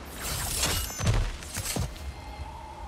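A game character lands on the ground with a heavy thud.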